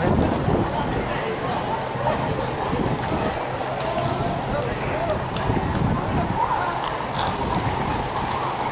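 Many horses' hooves clop on a paved street.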